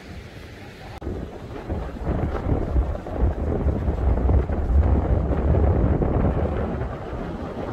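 Waves wash and splash over rocks along the shore.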